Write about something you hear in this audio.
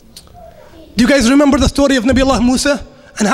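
A young man speaks loudly into a microphone, heard through a loudspeaker in an echoing room.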